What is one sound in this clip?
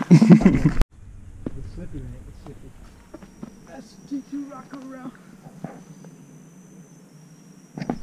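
Footsteps thud softly on a fallen log.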